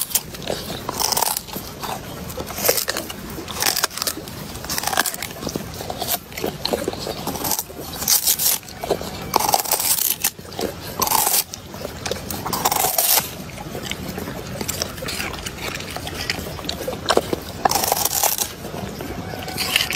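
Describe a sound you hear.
A dog crunches and chews on a corn cob close by.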